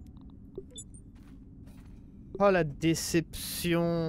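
A computer terminal beeps as it starts up.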